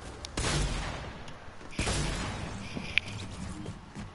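Video game sound effects burst loudly.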